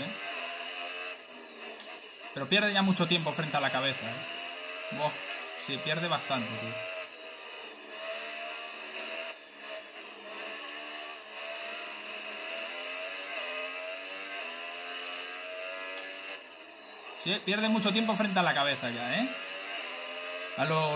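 A racing car engine whines steadily, rising and falling in pitch as it speeds up and slows down.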